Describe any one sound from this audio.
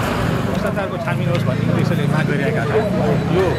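A middle-aged man speaks firmly into a microphone close by.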